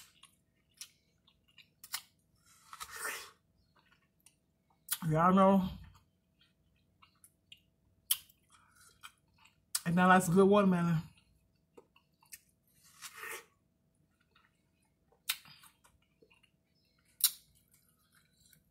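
A woman bites into juicy watermelon with wet, smacking crunches close by.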